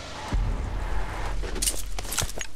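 A car engine rumbles.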